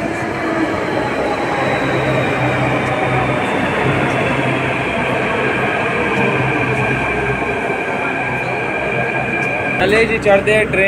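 Train brakes whine as the train slows, falling in pitch.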